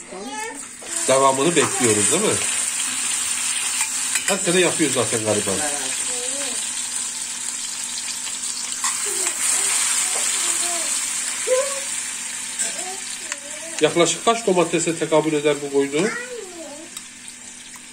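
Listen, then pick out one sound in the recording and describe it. Oil sizzles and crackles in a pan.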